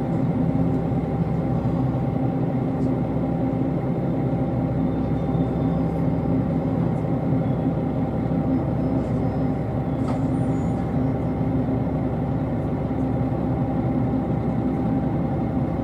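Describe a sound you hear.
A train rumbles and hums steadily, heard from inside a carriage.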